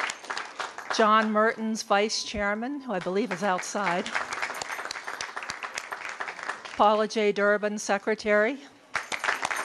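A woman speaks into a microphone with animation over the applause.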